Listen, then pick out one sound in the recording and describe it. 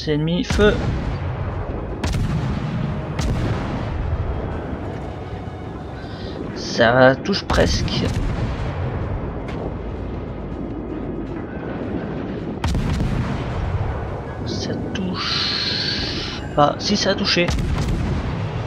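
Shells explode on a ship with deep thuds.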